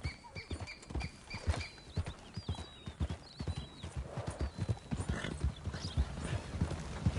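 Horse hooves thud steadily on a dirt track.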